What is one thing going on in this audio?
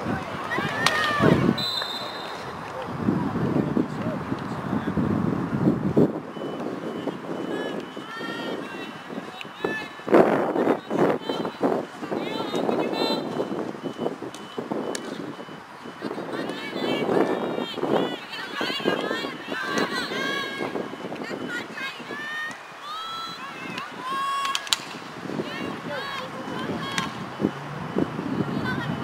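Young women shout and call out from across an open field.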